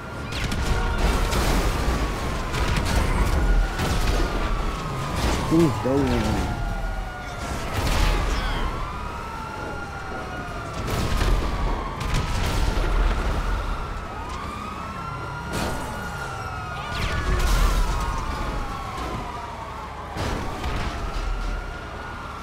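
Police sirens wail, rising and falling over and over.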